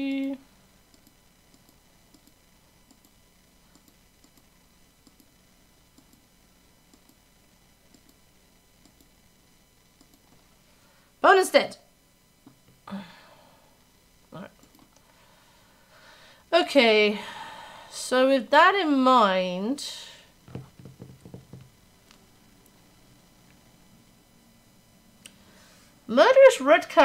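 A young woman talks calmly and closely into a microphone, in short bursts.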